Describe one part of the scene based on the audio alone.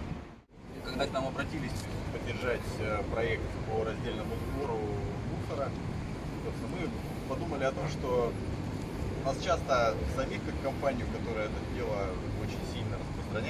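A middle-aged man speaks calmly outdoors.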